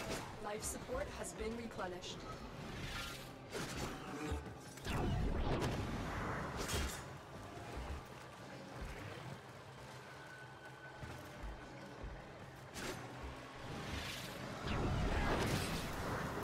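Bursts of energy whoosh and crackle loudly.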